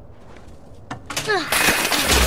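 Loose debris rattles and scrapes as someone climbs.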